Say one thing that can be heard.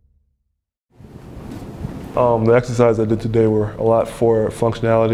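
Footsteps pad softly on a carpeted floor.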